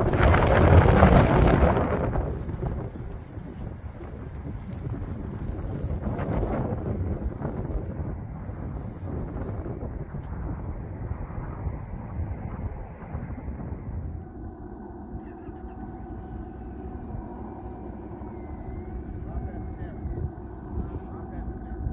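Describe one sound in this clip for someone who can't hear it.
Wind buffets the microphone outdoors, loudest at the start.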